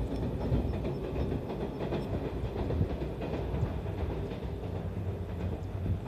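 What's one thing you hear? A train rumbles across a distant bridge.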